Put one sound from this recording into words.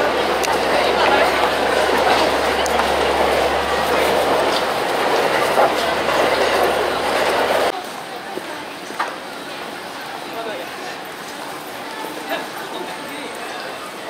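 Footsteps shuffle on pavement nearby.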